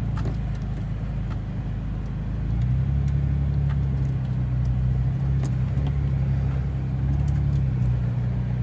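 Gravel and stones crunch and knock under tyres.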